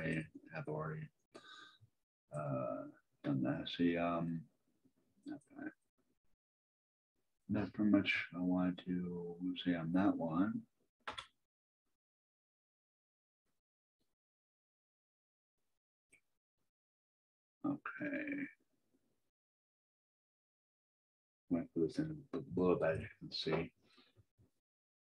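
A man talks calmly into a microphone, with pauses.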